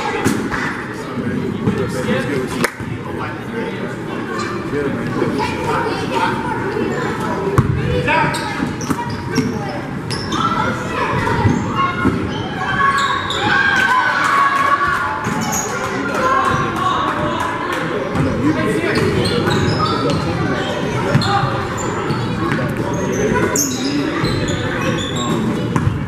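Sneakers squeak sharply on a hardwood floor in a large echoing gym.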